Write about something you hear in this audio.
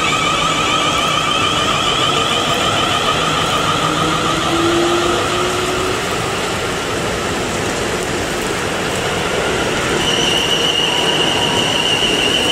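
Train wheels squeal and whine on the rails.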